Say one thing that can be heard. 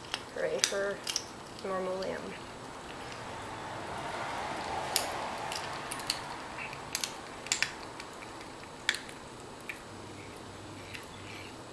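A cat licks and chews food, with wet clicking sounds.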